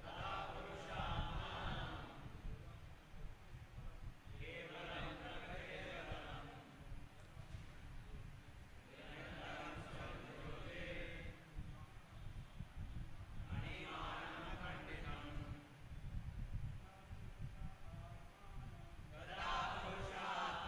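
An elderly man chants verses slowly into a microphone, in bursts with pauses.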